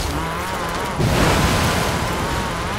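Tyres crunch and spray over gravel.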